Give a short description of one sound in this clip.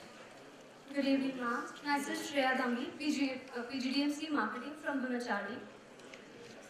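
A young woman speaks clearly through a microphone in a large hall.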